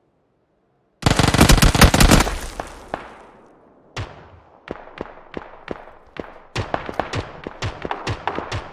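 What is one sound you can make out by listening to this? Rapid gunshots crack in bursts, echoing off the walls.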